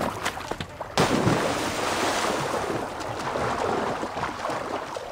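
Water churns and splashes steadily as a swimmer strokes along.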